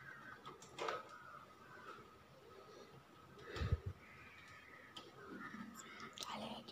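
Small plastic switches click and rattle up close.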